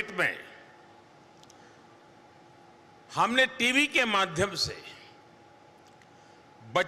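An elderly man speaks with emphasis through a microphone, with long pauses.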